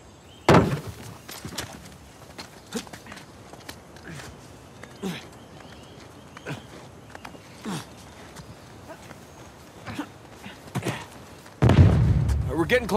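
A climber's hands grab and scrape against rock in quick bursts.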